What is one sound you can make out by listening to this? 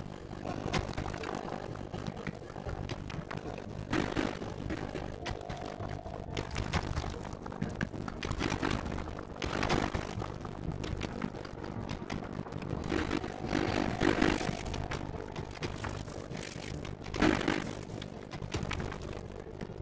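Low rumbling game ambience drones on steadily.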